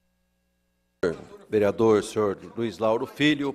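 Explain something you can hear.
A man speaks loudly through a microphone and a loudspeaker in a large room.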